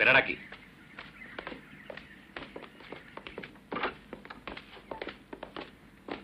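Footsteps tread on wooden boards.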